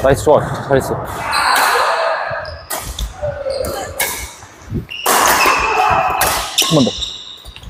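Badminton rackets smack shuttlecocks with sharp pops.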